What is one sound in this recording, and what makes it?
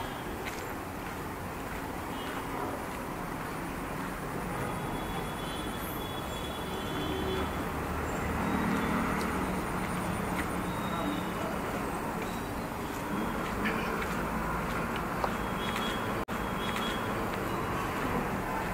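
Distant traffic hums steadily outdoors.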